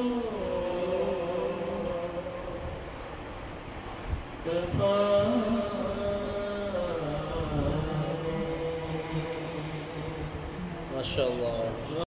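A man sings into a microphone, heard through a loudspeaker, in long held notes.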